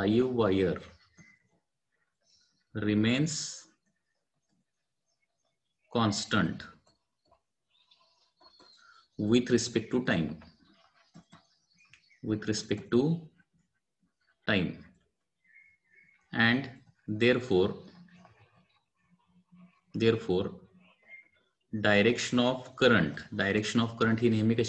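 A man speaks calmly and slowly into a close microphone, with pauses.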